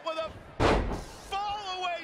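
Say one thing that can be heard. A heavy body thuds onto a wrestling mat.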